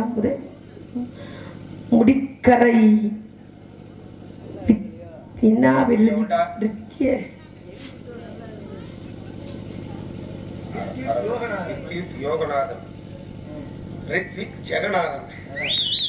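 A man with a strong voice speaks and chants loudly through a microphone and loudspeakers.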